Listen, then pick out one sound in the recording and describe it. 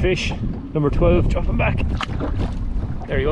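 A fish splashes back into the water.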